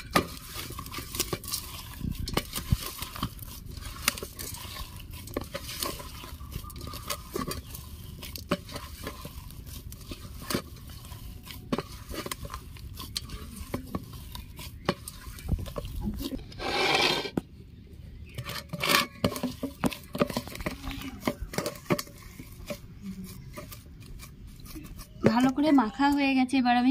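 A hand squishes and kneads soft dough against a metal bowl.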